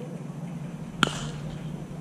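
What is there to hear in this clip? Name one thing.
A bat cracks sharply against a baseball outdoors.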